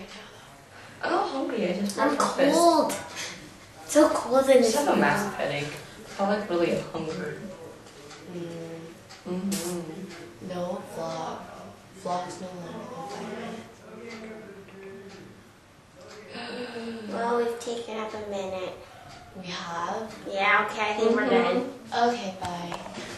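A second teenage girl talks with animation close by.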